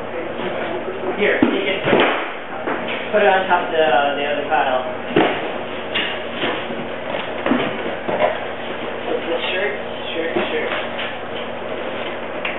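Teenage boys talk and laugh loudly nearby.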